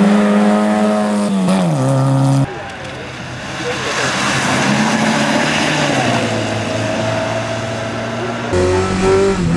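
A car engine revs hard and shifts gears as it races past.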